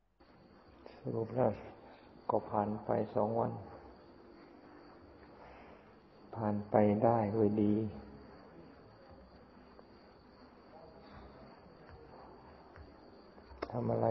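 An elderly man speaks slowly and calmly, close by.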